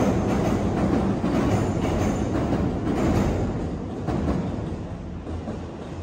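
A train rumbles past close by and fades away.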